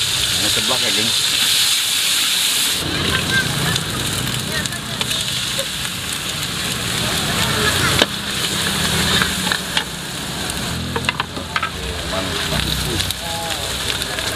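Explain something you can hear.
A metal spatula scrapes and taps against a wok.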